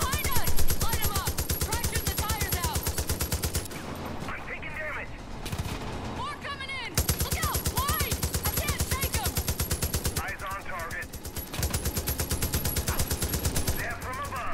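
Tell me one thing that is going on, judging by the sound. A mounted machine gun fires rapid bursts.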